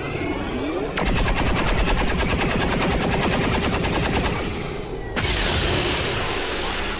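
Rapid bursts of gunfire rattle.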